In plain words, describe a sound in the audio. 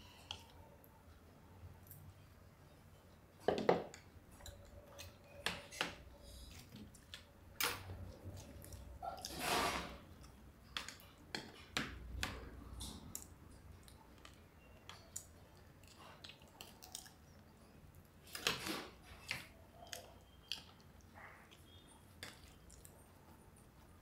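Two women chew and slurp food close by.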